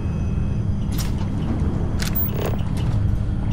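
A heavy door slides open with a mechanical clunk.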